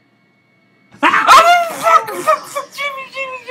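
A young man screams and yells loudly close to a microphone.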